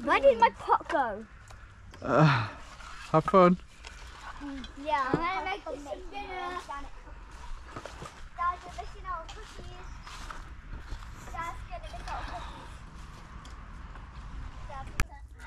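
Young children shout and chatter nearby, outdoors.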